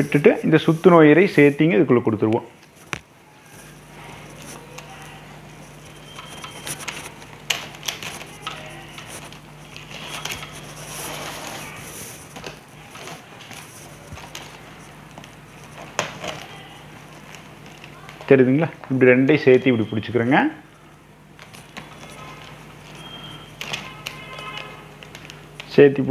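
Plastic strips rustle and crinkle as hands weave them.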